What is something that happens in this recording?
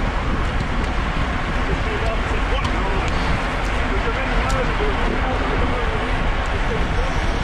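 Wind buffets loudly and steadily across the microphone.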